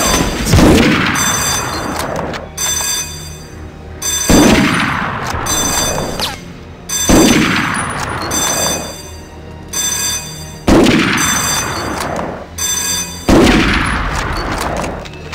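A rifle fires single loud shots that echo and fade.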